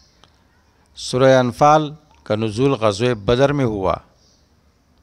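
A middle-aged man speaks calmly and closely into a headset microphone.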